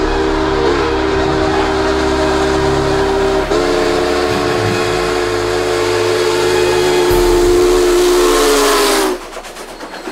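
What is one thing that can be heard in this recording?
A steam locomotive's whistle blows loudly and steadily.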